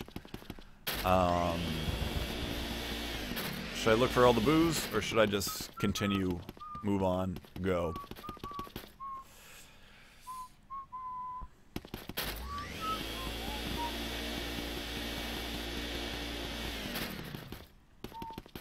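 A vacuum whirs steadily.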